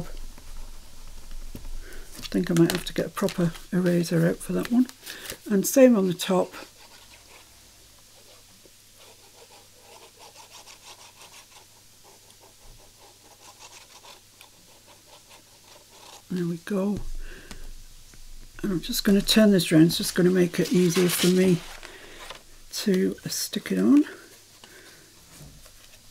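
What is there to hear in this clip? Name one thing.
Paper rustles and slides.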